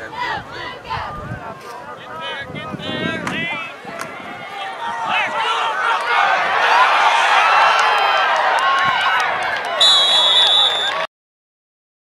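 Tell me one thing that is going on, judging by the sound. A crowd cheers and shouts outdoors.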